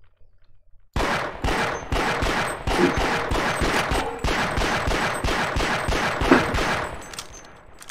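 A pistol fires shots in quick succession.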